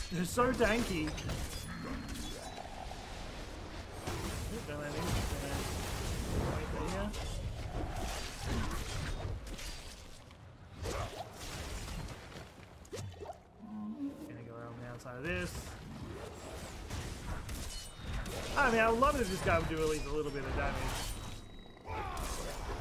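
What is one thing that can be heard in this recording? Blades slash and magic blasts crash repeatedly during a fierce fight.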